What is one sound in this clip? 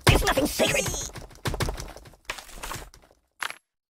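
Rocks thud and clatter down.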